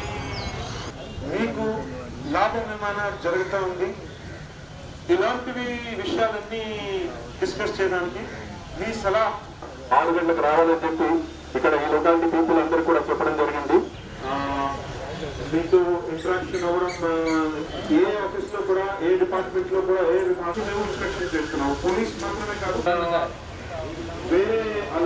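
A man speaks into a microphone, heard over a loudspeaker.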